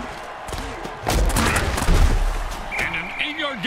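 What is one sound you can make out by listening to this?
Players collide in a tackle with heavy thuds.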